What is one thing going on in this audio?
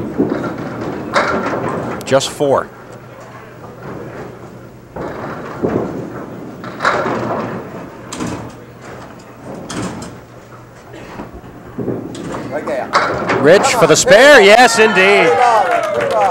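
Bowling pins clatter as a ball crashes into them.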